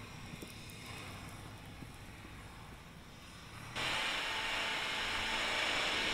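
Shovels scrape and crunch through deep snow.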